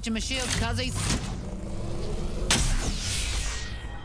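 Electricity crackles and zaps.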